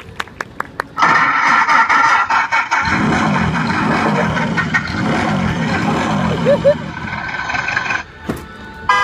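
Plastic wheels rumble and rattle over pavement as a bin is rolled along.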